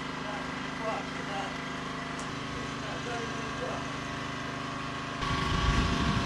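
Flames crackle as a fire burns.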